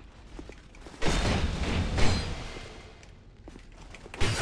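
A sword slashes and strikes with heavy thuds.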